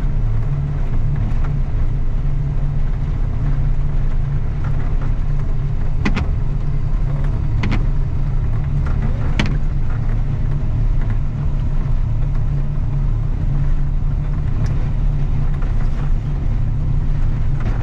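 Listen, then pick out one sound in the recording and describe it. A heavy vehicle's engine rumbles steadily close by.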